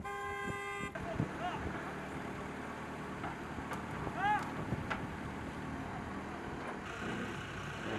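A digger's diesel engine rumbles steadily nearby.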